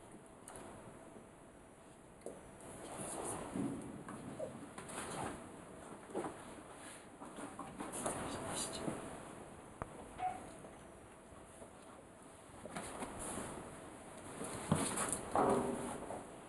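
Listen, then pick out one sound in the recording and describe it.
A dog's claws tap and scrape on a tiled floor.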